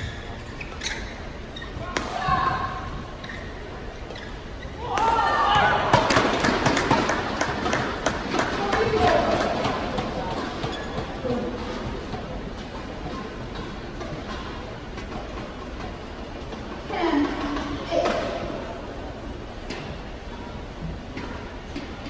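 Shoes squeak on a court floor.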